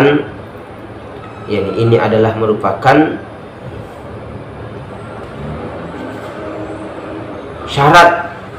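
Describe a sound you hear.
A man speaks calmly and slowly into a close microphone.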